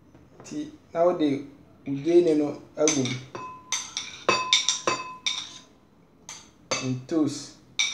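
A spoon scrapes on a plate.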